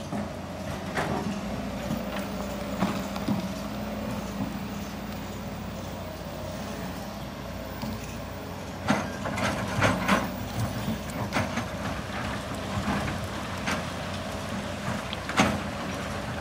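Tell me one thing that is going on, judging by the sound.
Rocks clatter and thud as they are dumped and scraped.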